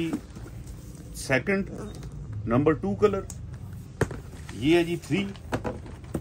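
A hand taps and slides across a cardboard box.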